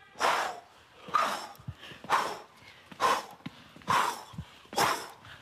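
Children shout together in a steady rhythm.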